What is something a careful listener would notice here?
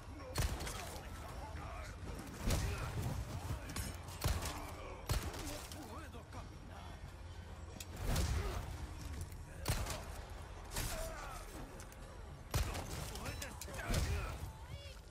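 A pistol fires sharp shots.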